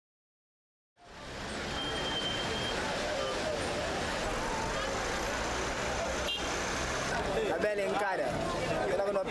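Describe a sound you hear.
A busy crowd chatters outdoors in a street.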